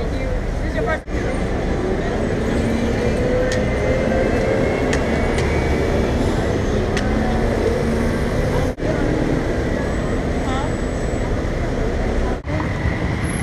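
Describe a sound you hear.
A bus engine hums close by as the bus pulls past.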